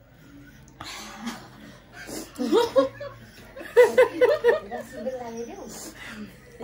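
Another young woman talks and laughs, close by.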